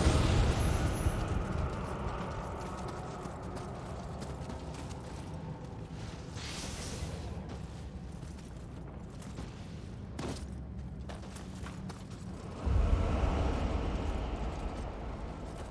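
Footsteps crunch steadily on stony ground.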